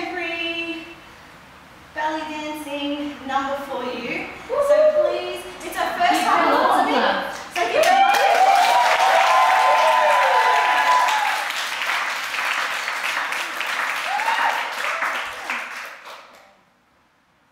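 A woman sings into a microphone, her voice heard through loudspeakers.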